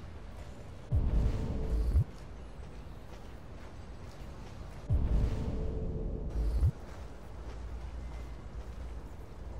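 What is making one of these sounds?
Footsteps brush softly through grass.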